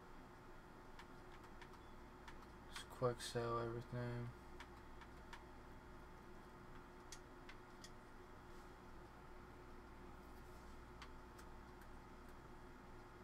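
Soft menu clicks tick as options change.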